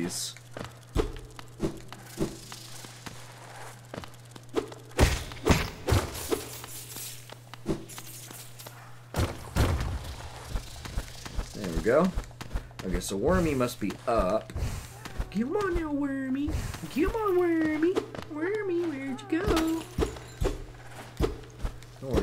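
Light footsteps patter and soft swishes sound as a small game character runs and jumps.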